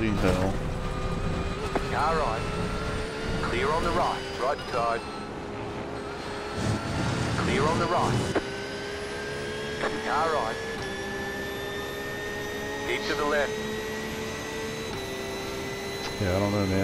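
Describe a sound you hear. A racing car engine drones and rises in pitch, dropping with each gear change.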